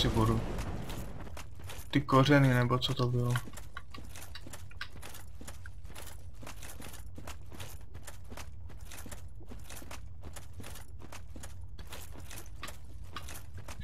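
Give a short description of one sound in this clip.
Armored footsteps clank at a steady pace.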